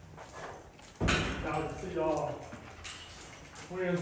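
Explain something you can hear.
Dogs whine and howl in an echoing room.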